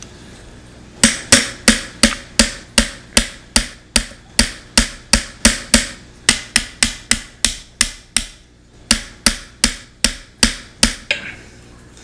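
A screwdriver handle taps sharply and rapidly on metal.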